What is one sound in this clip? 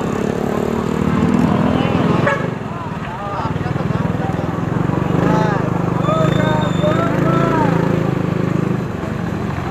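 People chatter nearby on a busy street.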